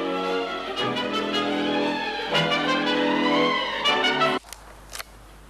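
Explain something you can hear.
A young child sings loudly and close by.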